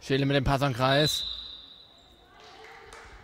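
A referee blows a sharp whistle in an echoing hall.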